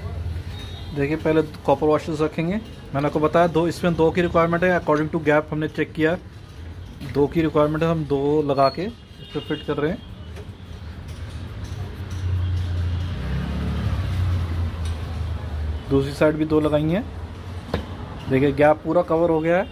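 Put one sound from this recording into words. Metal parts clink and scrape softly as a pipe fitting is handled and screwed on.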